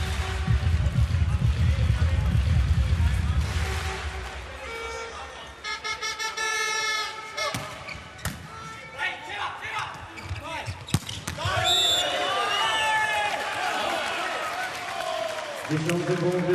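A large crowd cheers and chants in an echoing arena.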